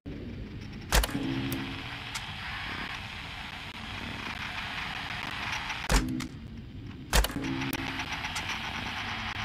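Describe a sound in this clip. Static hisses steadily from a monitor.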